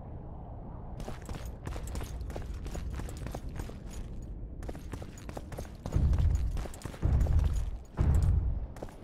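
Footsteps scuff and tap on stone.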